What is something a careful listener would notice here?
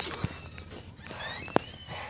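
A toy car's electric motor whirs.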